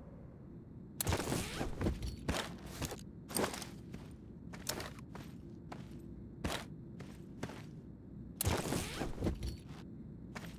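A metal case creaks open with a clatter.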